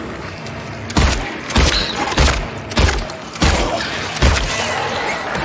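A pistol fires several loud shots in quick succession.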